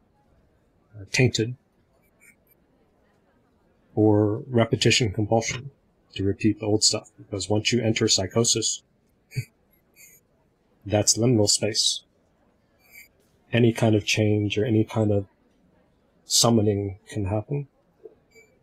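A man speaks with animation through an online call, in short bursts with pauses.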